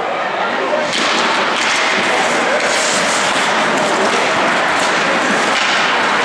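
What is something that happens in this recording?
Skates scrape and hiss across ice in a large echoing hall.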